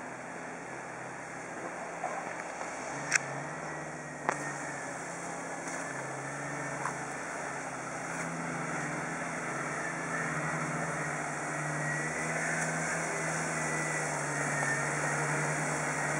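Tyres crunch over dry leaves and rocks.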